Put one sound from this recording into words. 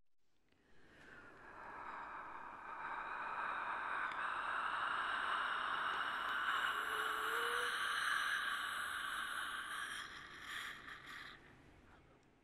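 Hands rub together softly.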